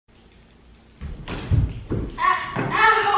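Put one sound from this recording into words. A young woman tumbles down stairs with heavy thuds.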